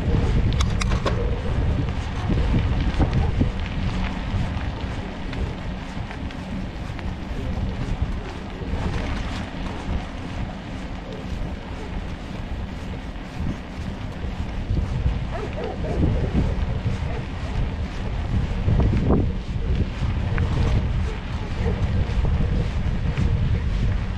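Tyres roll steadily over rough asphalt.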